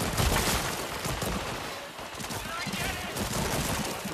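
A gun fires in bursts of shots.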